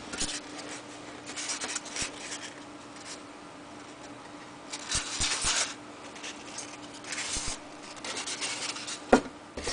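Foam squeaks and creaks softly as a hand bends it.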